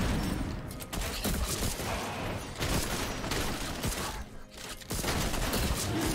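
Fantasy spell and combat sound effects whoosh and crackle in quick bursts.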